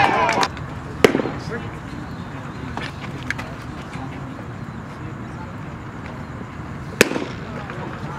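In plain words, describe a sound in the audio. A baseball smacks sharply into a catcher's mitt.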